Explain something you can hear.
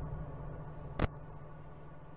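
A monitor clicks as it switches on.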